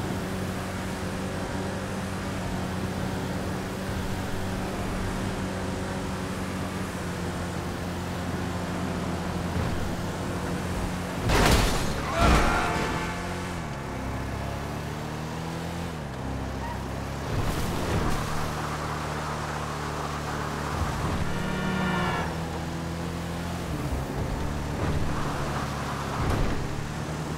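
A vehicle engine hums steadily as it drives fast.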